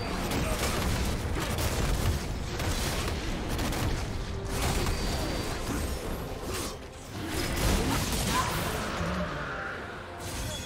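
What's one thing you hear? Magic blasts and sword hits crackle and whoosh in a fast video game battle.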